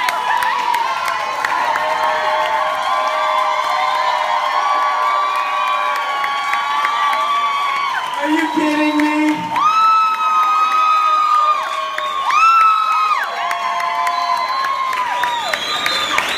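A person nearby claps their hands.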